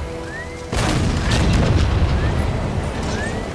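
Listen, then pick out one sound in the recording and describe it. A tank cannon fires with a loud boom and a rumbling blast.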